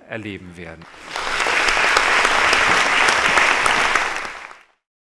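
An audience applauds loudly and then fades out.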